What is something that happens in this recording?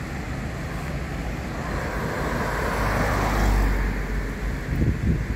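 A car drives past on the road nearby.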